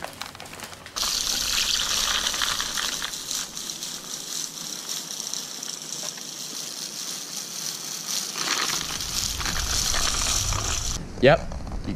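Seed hisses and patters steadily from a hand-cranked spreader.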